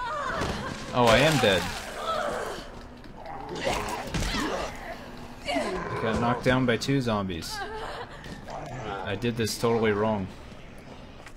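A man groans and struggles in a game.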